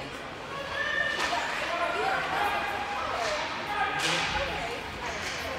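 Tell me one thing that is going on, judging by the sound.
A young woman cheers loudly.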